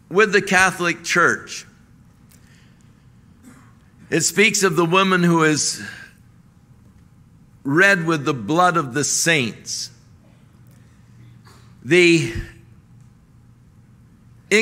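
An elderly man speaks forcefully into a microphone in short bursts with pauses.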